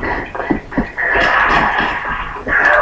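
A loud explosion bursts from a television speaker.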